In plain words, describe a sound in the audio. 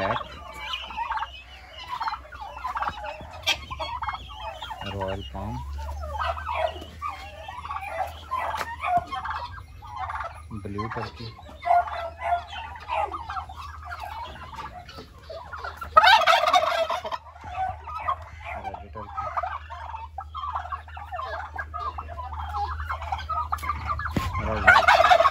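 Turkeys gobble and chirp close by, loudly and without pause.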